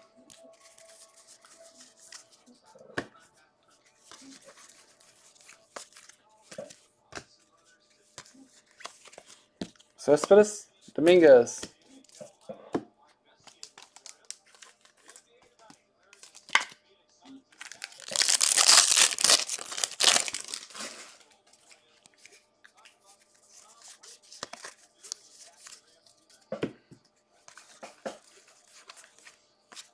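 Trading cards flick and rustle softly as they are sorted by hand.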